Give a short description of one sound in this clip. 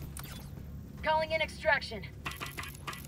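An electronic terminal beeps rapidly as buttons are pressed.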